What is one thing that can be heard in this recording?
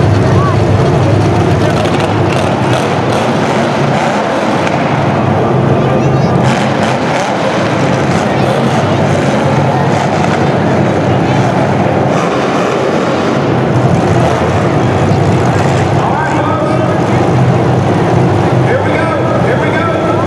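Car engines rumble and rev loudly in a large echoing arena.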